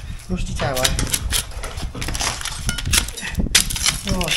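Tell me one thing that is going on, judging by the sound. A chisel knocks against bricks.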